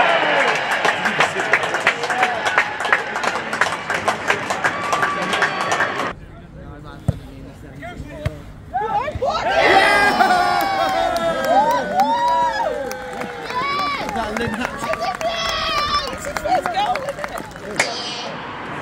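A crowd cheers and shouts loudly close by.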